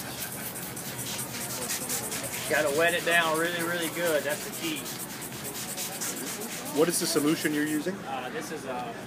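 A spray bottle spritzes in quick bursts.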